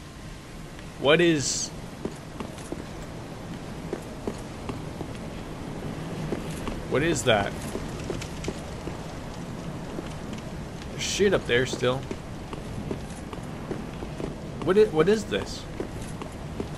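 A man speaks into a close microphone in short bursts.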